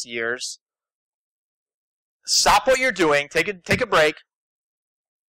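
A man speaks through a microphone in short bursts.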